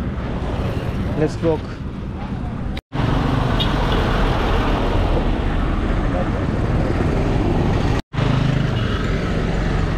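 A motorcycle engine drones past.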